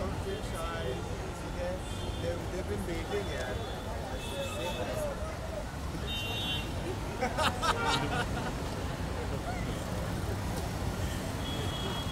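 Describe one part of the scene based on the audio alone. Several people talk and call out at once nearby, outdoors.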